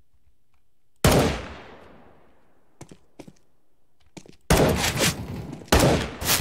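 Rifle shots ring out loudly in bursts, echoing off hard walls.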